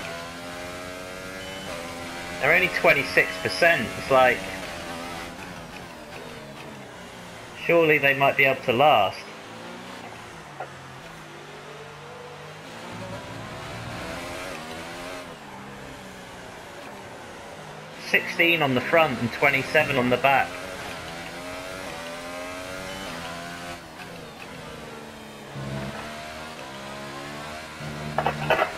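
A racing car engine revs high and shifts through gears.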